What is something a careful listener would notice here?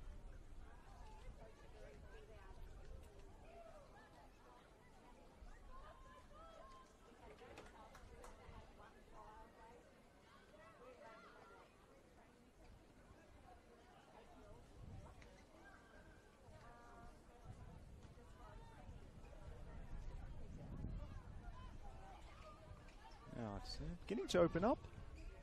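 Young women call out to each other across an open field.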